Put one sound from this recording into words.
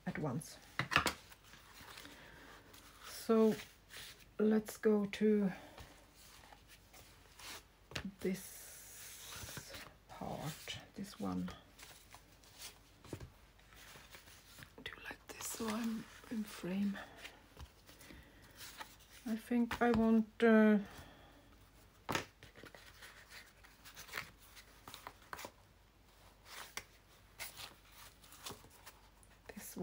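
Paper rustles and crinkles as pages are handled and turned.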